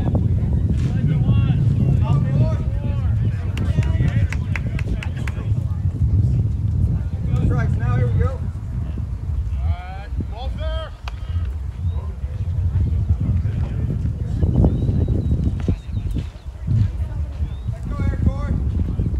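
Men call out from across an open field in the distance.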